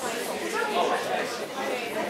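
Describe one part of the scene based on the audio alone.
A boy answers briefly into a microphone.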